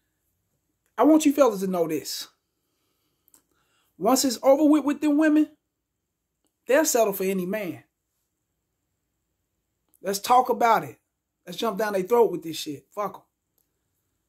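A man speaks calmly and close up in short bursts, with pauses between them.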